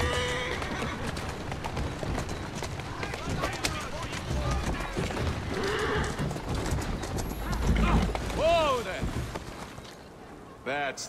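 Horse hooves clop at a quick pace.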